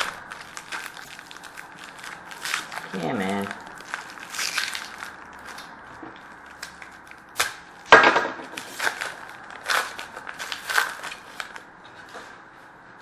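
A plastic wrapper crinkles and rustles in someone's hands.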